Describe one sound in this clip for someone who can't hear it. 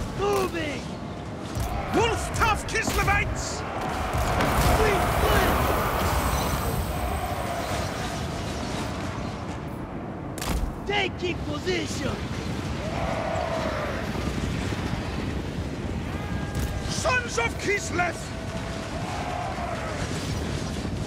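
A battle rages with a steady roar of clashing troops.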